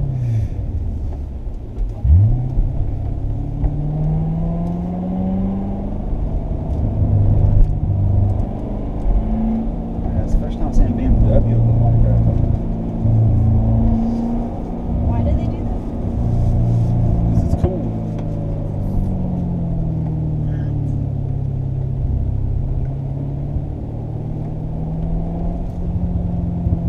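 A sports car engine roars and revs up and down through gear changes.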